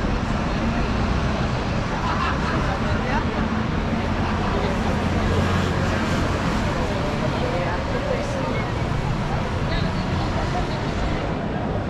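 Traffic hums steadily along a busy city street outdoors.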